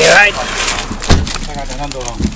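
A vehicle door slams shut.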